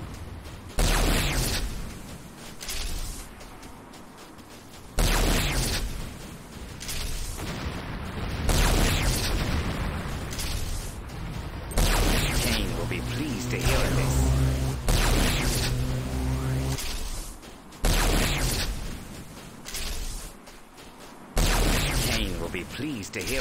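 Loud gunfire blasts in sudden bursts.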